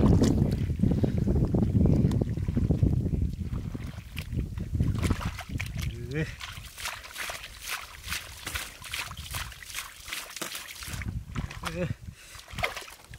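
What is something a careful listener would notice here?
Hands squelch and dig through wet mud.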